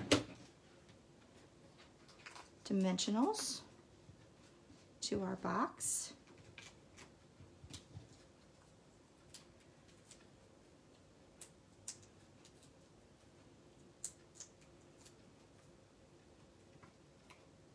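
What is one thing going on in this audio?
Paper rustles and crinkles softly between fingers.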